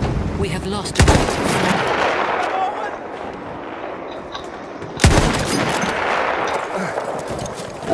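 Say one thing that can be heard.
A rifle fires a loud shot and the sound echoes.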